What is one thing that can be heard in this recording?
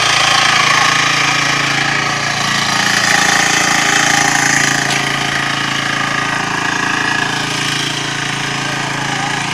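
A small engine runs steadily with a loud rattling drone.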